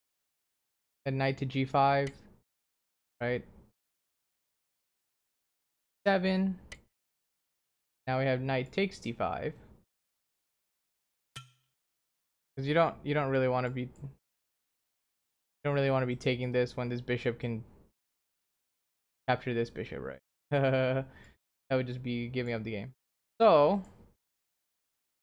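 A young man speaks calmly and thoughtfully into a close microphone, with pauses.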